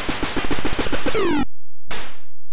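A short falling electronic tone sounds from an old computer game.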